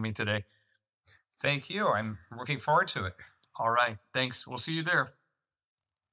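A second middle-aged man speaks cheerfully over an online call.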